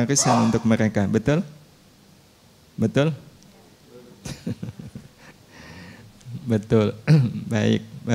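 A middle-aged man speaks into a microphone with animation, pausing now and then.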